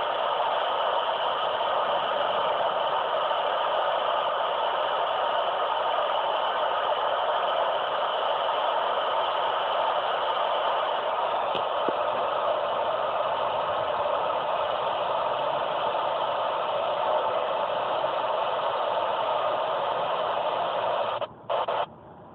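A car's engine hums steadily with road noise inside the cabin.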